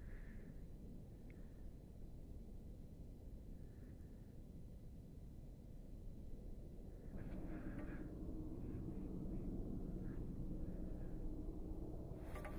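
A volcanic eruption rumbles deeply and steadily from a distance.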